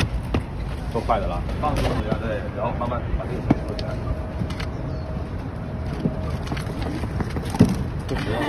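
A young man talks nearby.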